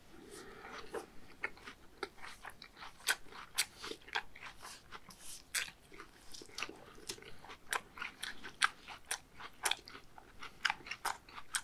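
Gloved fingers squish and scrape food on a wooden board.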